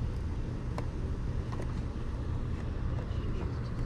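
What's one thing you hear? A glass cap clinks as it is lifted off a bottle.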